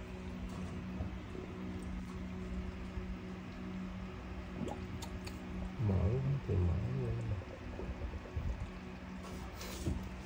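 Water runs from a hose into a drain.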